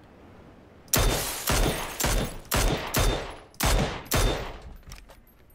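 Rifle shots crack out in a rapid series.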